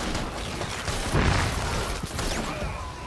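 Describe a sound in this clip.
A powerful energy blast crashes and roars.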